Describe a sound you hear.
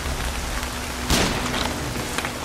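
A gun fires a single loud shot, booming briefly.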